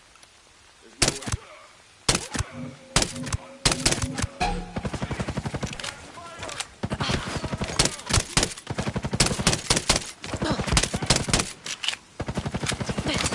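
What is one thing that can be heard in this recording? A rifle fires in rapid bursts nearby.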